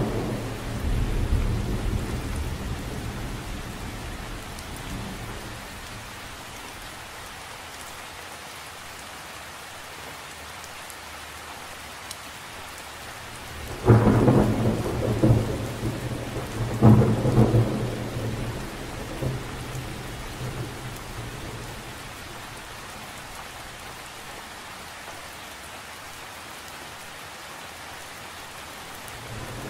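Rain patters steadily on the surface of a lake outdoors.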